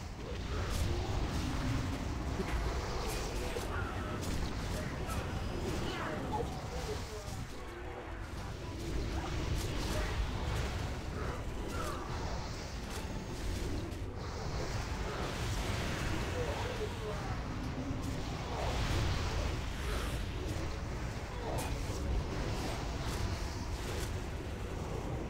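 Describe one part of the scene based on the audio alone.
Spell effects crackle and clash in a game battle.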